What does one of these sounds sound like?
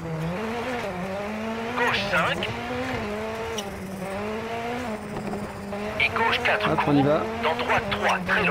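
A rally car engine roars steadily, its pitch rising and falling with gear changes.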